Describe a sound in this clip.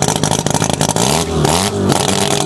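A race car engine revs up sharply and drops back.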